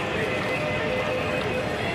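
Footsteps splash on wet pavement nearby.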